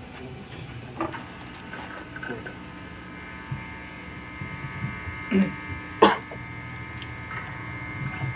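An electric guitar rings out with soft held notes.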